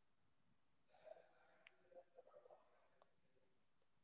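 A young woman speaks briefly and quietly over an online call.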